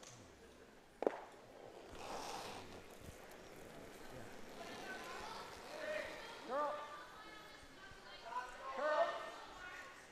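A curling stone rumbles along the ice.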